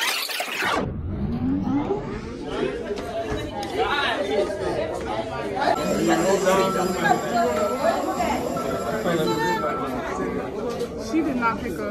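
A young woman talks on the phone nearby, with animation.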